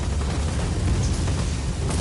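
Machine gun fire rattles rapidly.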